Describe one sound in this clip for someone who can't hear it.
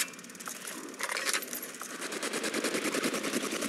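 Electricity crackles and zaps loudly.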